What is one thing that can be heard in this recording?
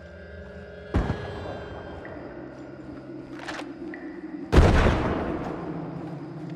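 Loud blasts boom and ring out with a long echo.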